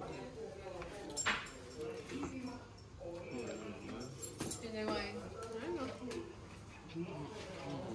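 A small dog growls playfully while tugging a toy.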